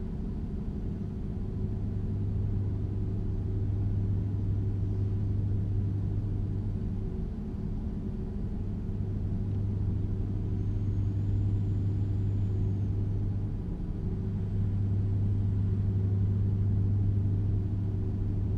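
Tyres roll over a highway.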